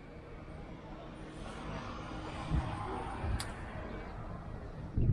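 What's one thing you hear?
A van drives slowly past.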